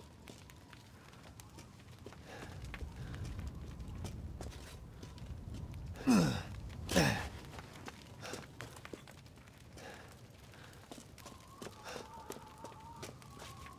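Footsteps crunch on snow and stone.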